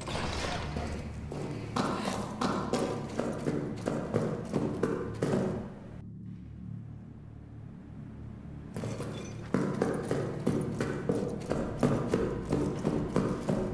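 Footsteps scuff on a dusty floor.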